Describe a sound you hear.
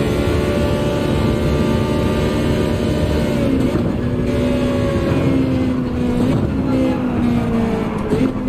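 A racing car engine roars at high revs, then drops in pitch as the car slows.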